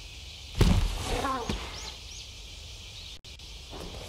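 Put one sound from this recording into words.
A large creature lands with a heavy thud.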